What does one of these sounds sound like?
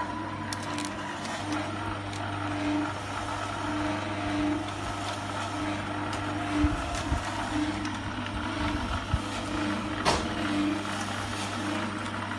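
Grapes rustle and clatter as they are tipped into a metal hopper.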